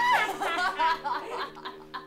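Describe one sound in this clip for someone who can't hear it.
A young woman screams in terror.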